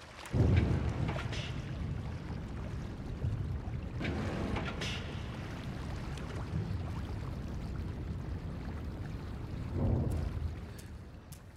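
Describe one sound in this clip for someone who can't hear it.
Water splashes as a small figure wades through it.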